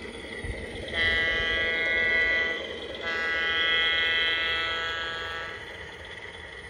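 A small locomotive's horn sounds two long loud blasts close by.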